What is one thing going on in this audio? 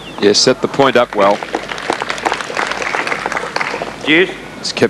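A crowd applauds after the rally.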